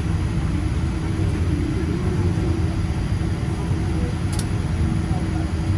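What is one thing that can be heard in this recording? An airliner's turbofan engines idle as it taxis, heard from inside the cabin.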